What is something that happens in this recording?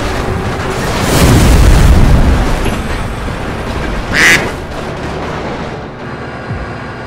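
Metal scrapes and grinds as train cars derail.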